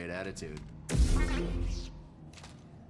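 A lightsaber ignites with a loud hum.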